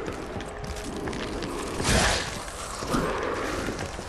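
A sword swishes through the air.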